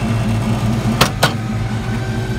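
A truck door clicks open.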